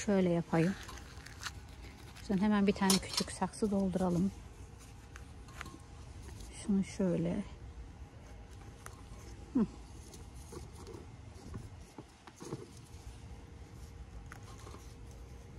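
A gloved hand scrapes and presses loose potting soil in a pot.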